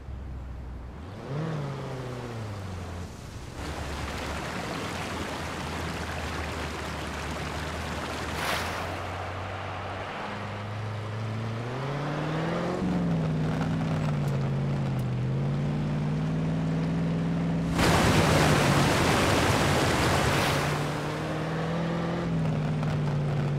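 Tyres crunch over mud.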